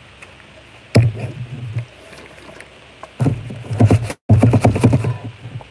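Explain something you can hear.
A plastic jug crackles and thumps loudly, close to the microphone.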